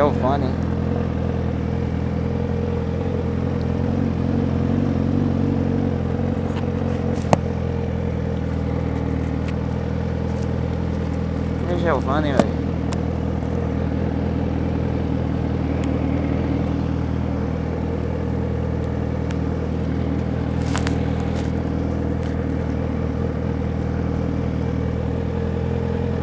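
A motorcycle engine idles steadily and close, with a low rumble.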